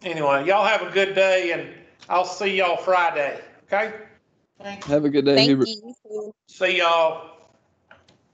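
A man explains calmly over an online call.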